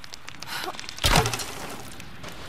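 An arrow thuds hard into wood.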